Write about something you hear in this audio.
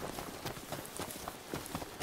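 Leaves and branches rustle as someone pushes through bushes.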